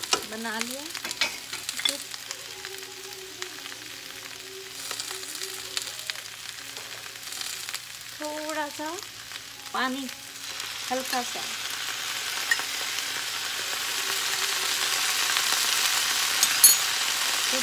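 Vegetables sizzle in a hot pan, growing louder.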